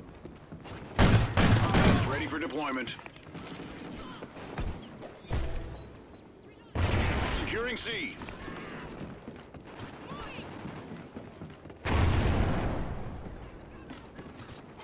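Gunshots fire in loud bursts.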